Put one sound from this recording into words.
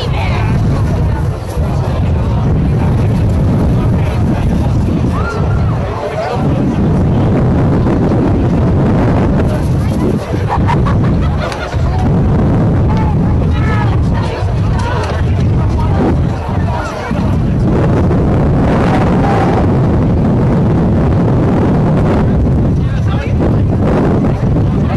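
A crowd of teenage boys shouts and chatters outdoors.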